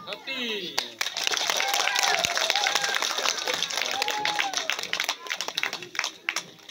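Children cheer and clap loudly outdoors.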